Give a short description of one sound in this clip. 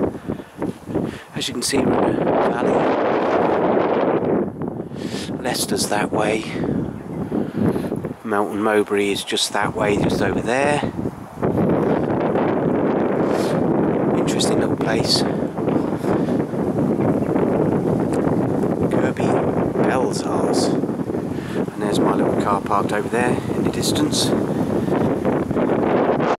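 Wind rustles through the branches of trees.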